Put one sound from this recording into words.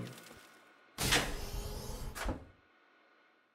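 A heavy metal door slides and clanks shut.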